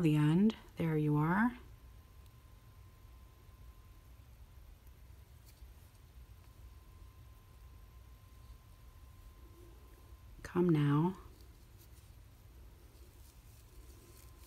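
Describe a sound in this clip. Thin twine rustles softly as it is pulled and wound.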